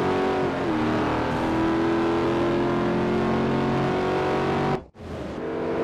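A race car engine roars at high speed.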